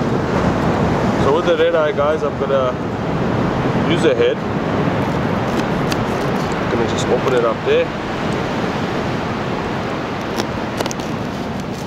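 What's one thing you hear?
A knife scrapes and cuts through a fish on a board.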